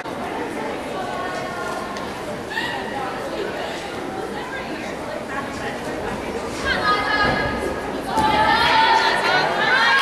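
Young girls chatter and cheer nearby.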